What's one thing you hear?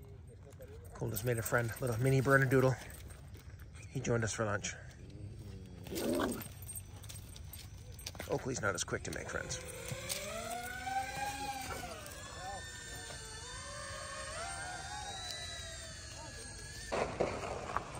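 Several dogs yip, bark and whine as they play close by.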